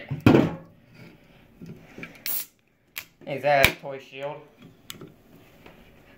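Aluminium cans clink and knock as a hand moves them.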